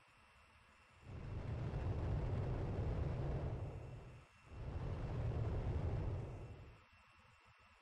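A jet engine roars loudly, rising and then fading.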